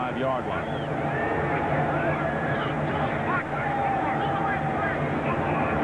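A stadium crowd murmurs and cheers in the distance.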